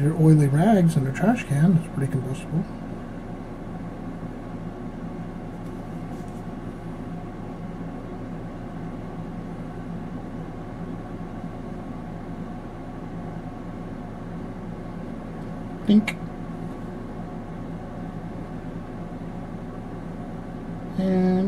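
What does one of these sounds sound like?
A thin plastic strip scrapes softly against a metal plate.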